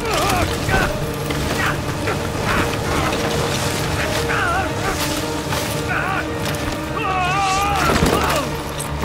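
Leaves rustle and swish as a body pushes through dense foliage.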